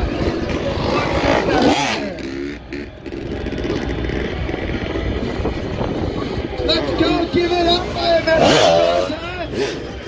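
A motorcycle engine revs and rumbles as a rider passes.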